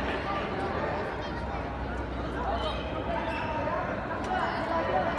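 Shuttlecocks are struck with badminton rackets, echoing in a large hall.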